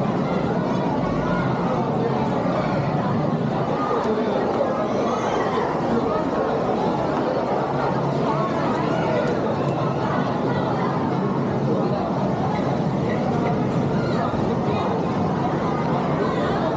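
A crowd of people chatters steadily in a large echoing hall.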